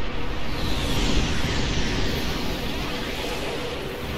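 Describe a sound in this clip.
A swirling vortex roars and whooshes like a strong wind.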